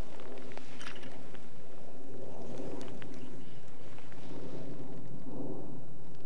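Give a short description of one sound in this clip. A fishing rod swishes through the air during a cast.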